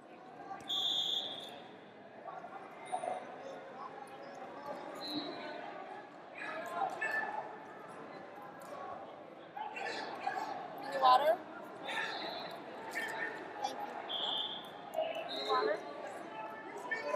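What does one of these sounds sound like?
Men's voices shout and call across a large echoing hall.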